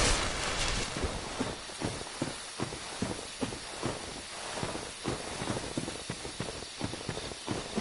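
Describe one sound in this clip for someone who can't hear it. Armoured footsteps clank on the ground at a steady pace.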